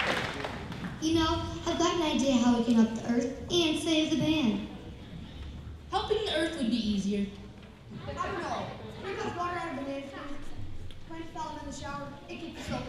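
A man speaks into a microphone on stage, heard through loudspeakers.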